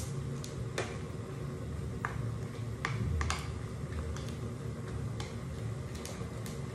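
Noodles sizzle in a hot pan.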